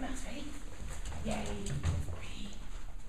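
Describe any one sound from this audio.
A dog's paws patter and thump quickly along a hollow ramp.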